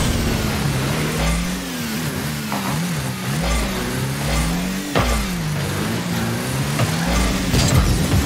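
A rocket boost roars in bursts.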